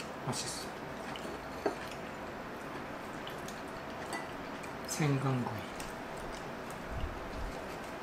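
Chopsticks clink against a plate.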